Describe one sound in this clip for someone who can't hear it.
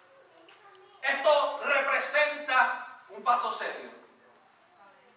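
A man speaks into a microphone over a loudspeaker in an echoing hall.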